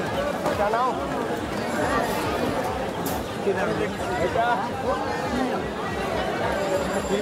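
A crowd of men talk loudly nearby, outdoors.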